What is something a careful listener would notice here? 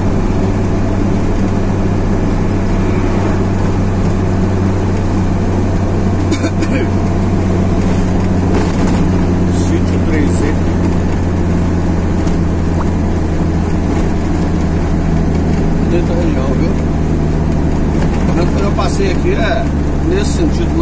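A truck engine drones steadily close by.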